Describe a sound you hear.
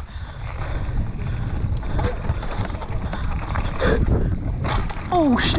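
Bicycle tyres rumble and crunch fast over a dirt trail.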